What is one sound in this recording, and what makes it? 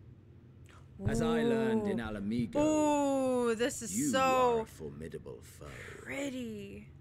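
A young woman talks excitedly into a close microphone.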